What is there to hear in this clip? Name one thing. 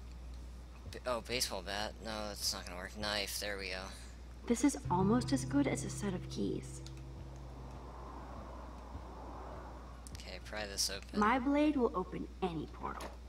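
A young woman speaks calmly and quietly, close by.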